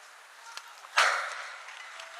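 A bat cracks sharply against a softball outdoors.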